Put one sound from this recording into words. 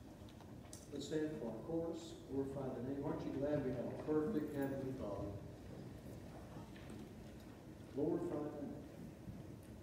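A man speaks calmly through a microphone in an echoing hall.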